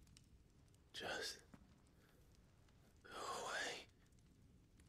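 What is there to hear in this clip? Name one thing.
A young man speaks quietly and wearily, close by.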